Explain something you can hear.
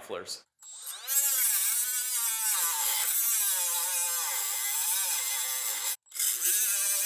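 An electric cutting tool whines as it grinds through metal.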